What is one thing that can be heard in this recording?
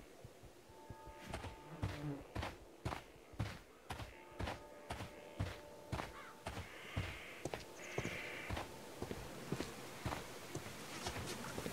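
Footsteps crunch steadily on soft earth.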